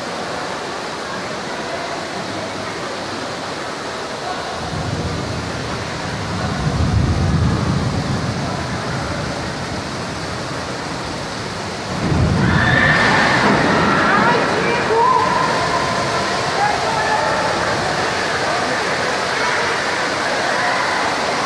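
Heavy rain lashes against glass.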